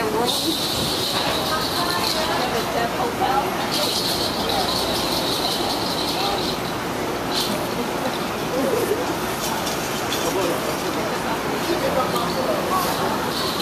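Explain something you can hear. Traffic rumbles along a street.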